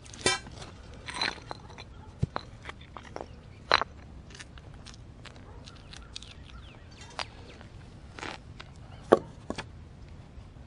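Chunks of stone knock and clatter as they are set down on concrete.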